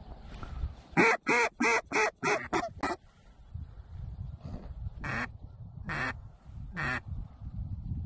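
Geese honk loudly overhead.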